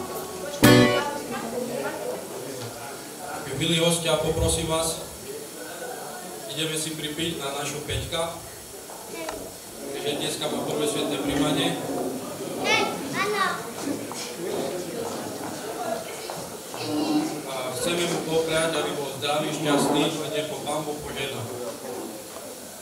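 A young man speaks calmly into a microphone, heard through loudspeakers in an echoing hall.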